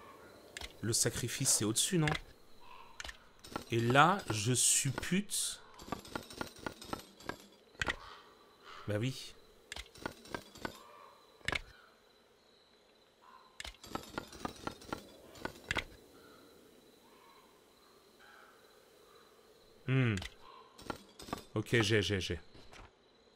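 Heavy metal medallions click and clack as they are turned and swapped.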